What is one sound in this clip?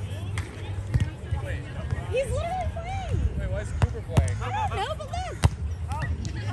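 Players hit a volleyball with dull thumps.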